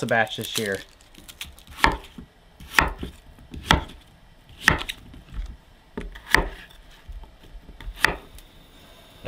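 A knife chops onions on a wooden board.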